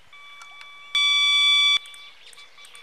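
An electronic bite alarm gives a loud, steady, high beep.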